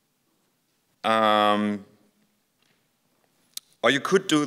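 A man speaks into a microphone in a calm, lecturing way.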